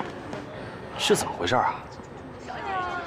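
A young woman speaks in surprise.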